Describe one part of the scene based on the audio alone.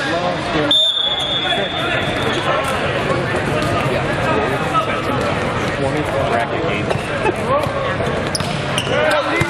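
Many voices chatter and call out in a large echoing hall.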